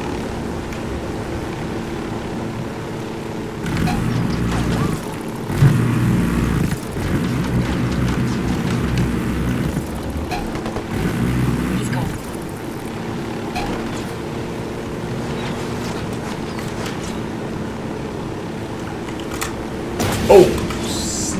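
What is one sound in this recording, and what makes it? A helicopter's rotor thumps steadily as the helicopter flies low.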